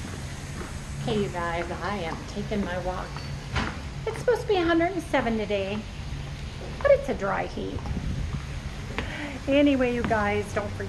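A middle-aged woman talks with animation close to a microphone.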